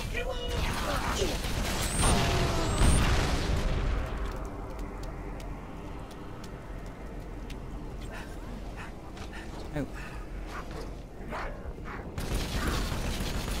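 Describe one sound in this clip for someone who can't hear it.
A plasma gun fires in rapid zapping bursts.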